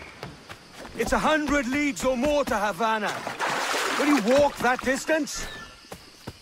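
Water splashes as someone wades through a stream.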